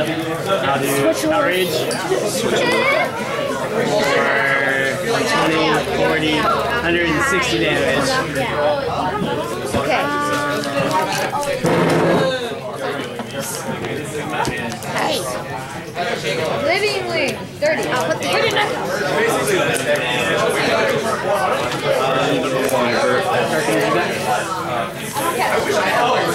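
Playing cards slap and slide softly onto a tabletop mat.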